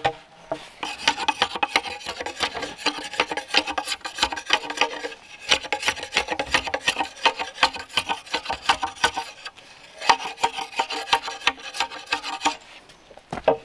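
A machete chops into a bamboo stalk with sharp blows.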